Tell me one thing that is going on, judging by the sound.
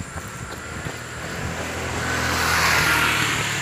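A motorbike approaches and passes close by.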